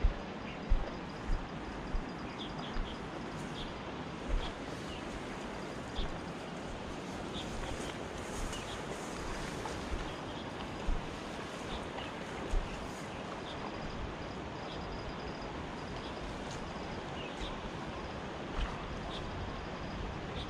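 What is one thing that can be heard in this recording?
A river flows and gurgles over rocks close by.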